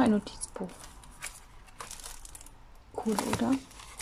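Pages of a book flip.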